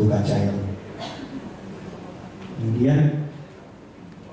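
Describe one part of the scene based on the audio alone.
A man speaks into a microphone through loudspeakers in an echoing hall.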